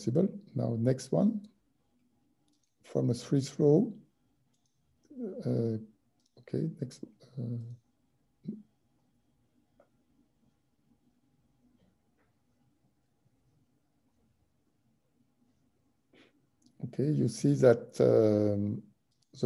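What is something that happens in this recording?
An older man speaks calmly over an online call, pausing between phrases.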